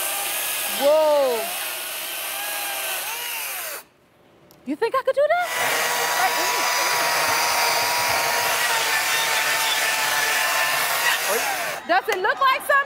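A chainsaw roars as it cuts into wood.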